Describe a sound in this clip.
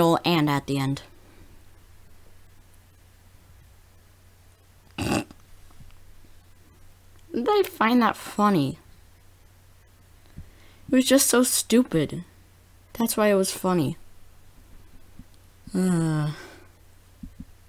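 A teenage boy talks animatedly into a close microphone, in short bursts.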